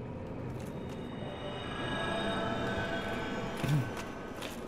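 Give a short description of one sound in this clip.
A magical shimmer rings out and fades.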